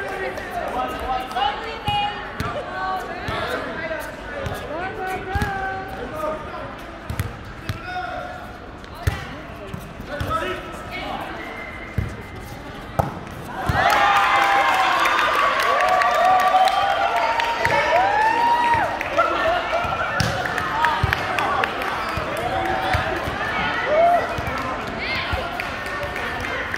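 Hands strike a volleyball.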